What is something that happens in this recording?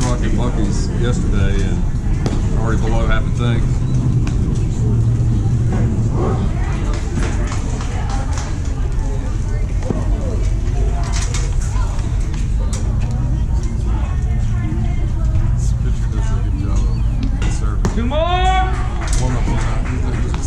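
Players and onlookers call out and chatter at a distance.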